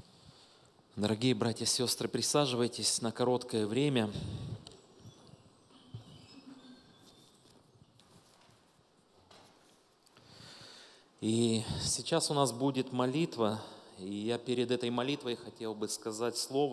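A middle-aged man speaks calmly through a microphone in a large hall.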